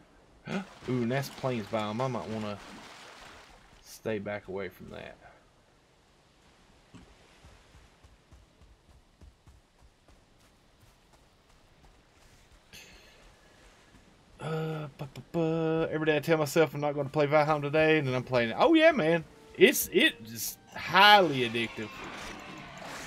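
A middle-aged man talks calmly and casually into a close microphone.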